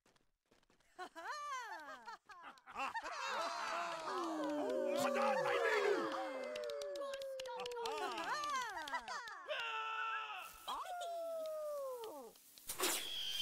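Fireworks whistle with falling tones and pop overhead.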